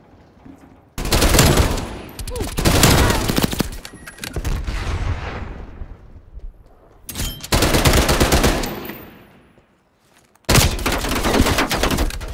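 A submachine gun fires in rapid bursts close by.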